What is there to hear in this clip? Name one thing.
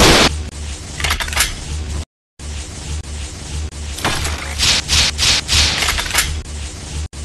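Explosions burst in quick bursts.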